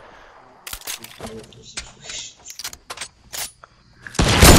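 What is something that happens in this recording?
Quick, sharp clicking and clattering sounds come from a video game as walls are put up.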